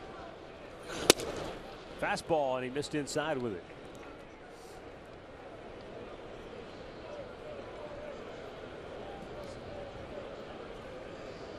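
A crowd murmurs in a large open stadium.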